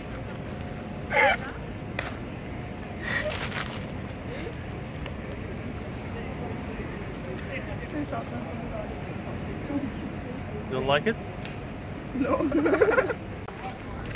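Young women laugh close by.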